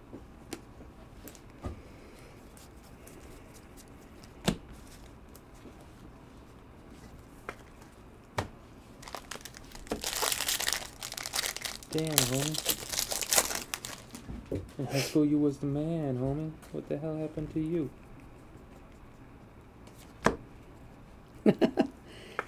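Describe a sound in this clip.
Trading cards flick and shuffle.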